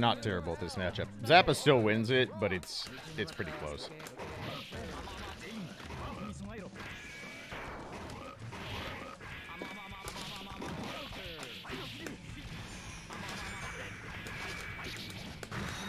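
Punches and sword strikes in a fighting game thud and clash rapidly.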